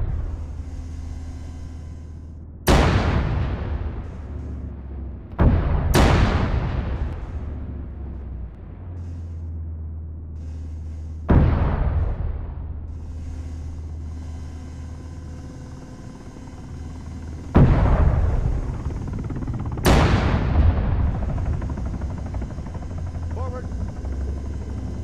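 A helicopter's rotor drones steadily.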